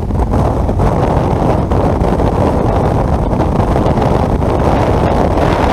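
Wind buffets loudly against a moving vehicle.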